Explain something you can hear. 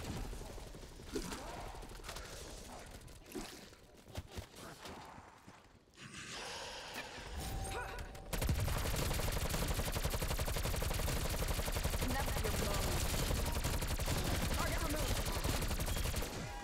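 A woman talks into a microphone.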